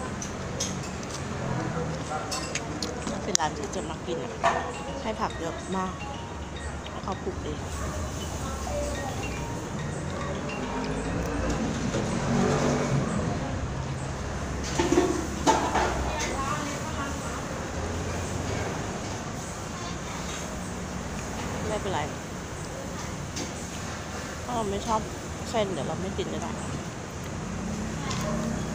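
Cutlery clinks and scrapes against a plate.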